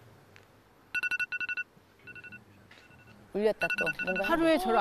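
A phone alarm beeps repeatedly.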